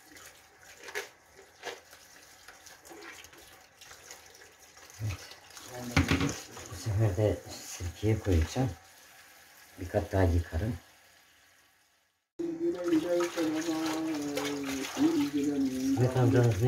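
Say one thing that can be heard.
Wet leafy greens rustle and splash as hands wash them.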